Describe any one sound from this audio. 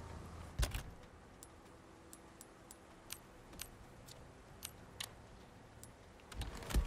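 Menu clicks tick softly and repeatedly.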